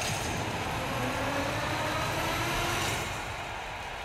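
Slot machine reels spin with a rapid whirring clatter.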